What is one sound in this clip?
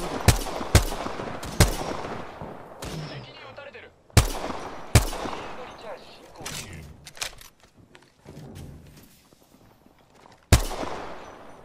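A rifle fires single loud shots that echo and fade.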